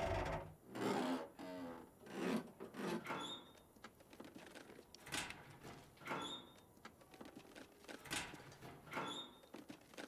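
Metal locker doors rattle and clank as someone rummages through them.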